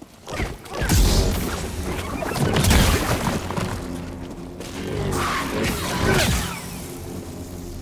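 An energy blade clashes with loud crackling hits.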